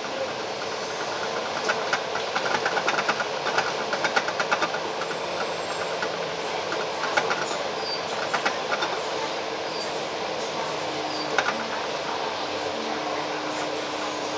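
A bus engine hums as it drives along.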